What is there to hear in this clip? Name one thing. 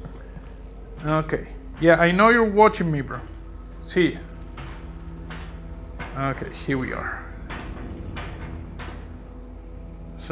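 Footsteps clang on metal stairs and grating.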